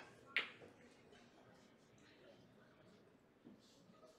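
A billiard ball drops into a pocket with a knock.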